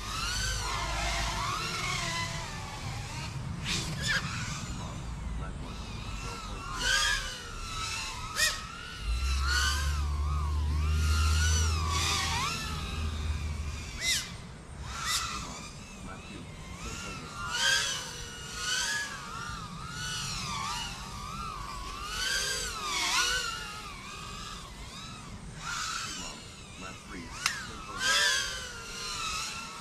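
A small drone's motors whine, rising and falling in pitch as it races around.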